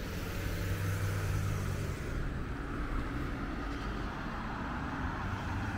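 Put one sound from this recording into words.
Cars drive along a nearby road with a steady rushing sound.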